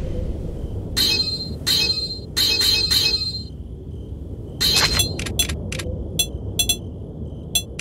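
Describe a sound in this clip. Short electronic menu blips chime several times.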